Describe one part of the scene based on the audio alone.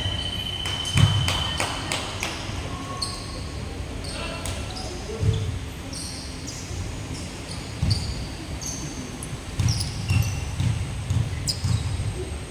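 A basketball bounces on a hard court in a large echoing hall.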